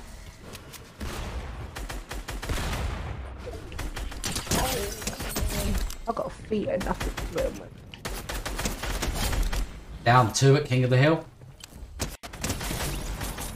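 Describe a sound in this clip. Rapid gunshots crack in a video game.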